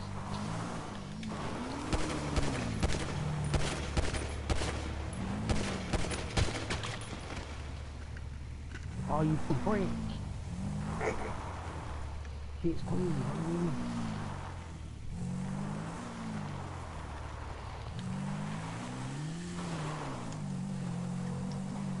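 A motorbike engine revs up and down.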